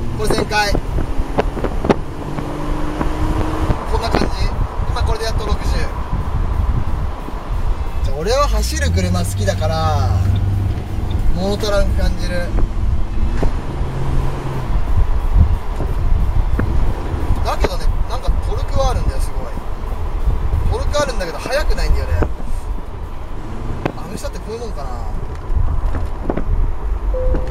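A car engine hums and revs while driving.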